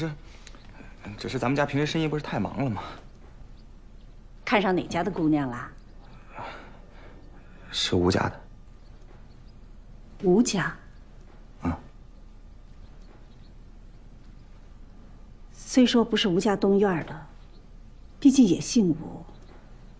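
A middle-aged woman speaks warmly and gently, close by.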